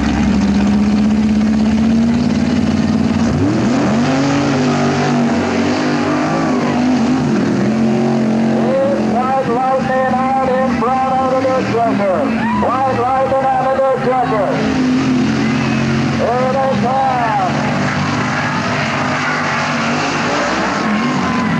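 A truck engine roars loudly at full throttle.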